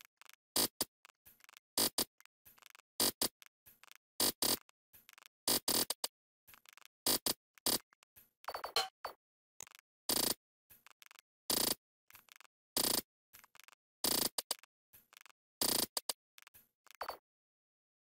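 Swords swish and strike in quick bursts.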